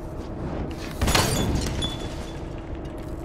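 A fiery explosion bursts with a loud whoosh.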